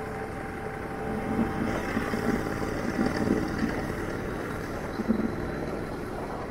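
A motorcycle engine putters nearby.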